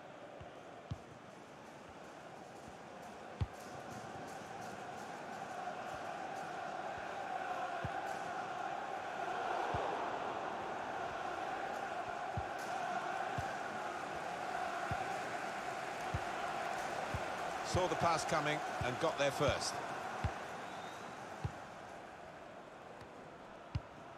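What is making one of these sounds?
A large stadium crowd roars and chants steadily, swelling in the middle.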